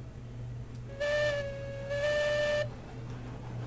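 A steam locomotive whistle blows twice.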